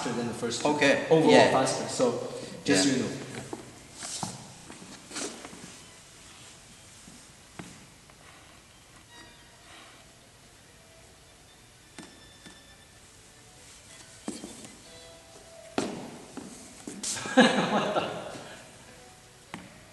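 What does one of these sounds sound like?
A man speaks calmly nearby in a reverberant hall.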